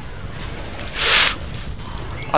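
A magic blast whooshes loudly in a game.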